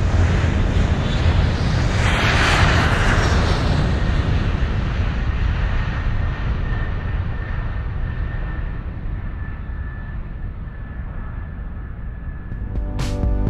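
Wind rushes against an aircraft's body.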